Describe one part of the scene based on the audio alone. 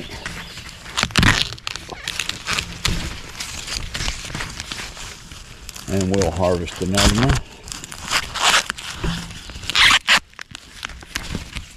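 Corn husks rustle and tear as a hand peels them back.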